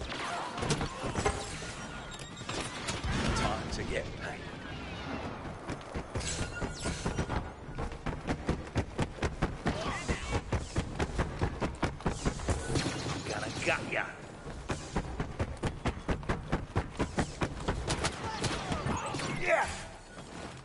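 Blaster guns fire in rapid bursts of sharp shots.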